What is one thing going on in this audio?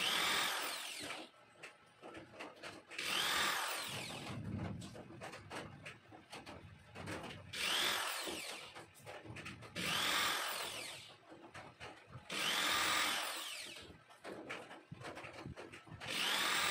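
A handheld power drill whines loudly in repeated short bursts.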